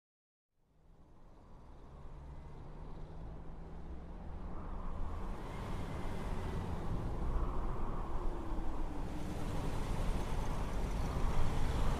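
A vehicle's engine roars in the distance, growing steadily louder as it approaches.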